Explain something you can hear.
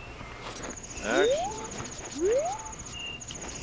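Short rising video game sound effects chirp.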